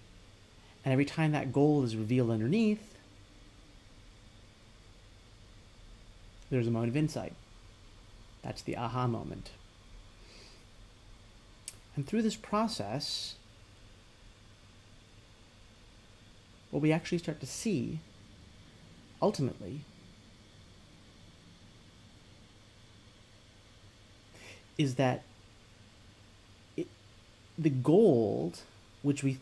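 A man talks with animation, close to a microphone, in short bursts with pauses.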